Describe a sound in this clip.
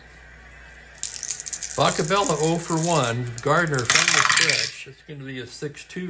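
Dice rattle and tumble onto a wooden tray.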